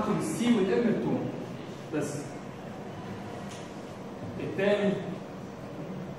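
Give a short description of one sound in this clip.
A young man speaks to an audience in a small echoing room, pausing between phrases.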